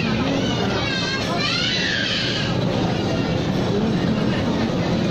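Several adults chatter indistinctly nearby.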